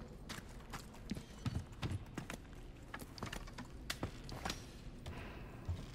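A man climbs a wooden ladder.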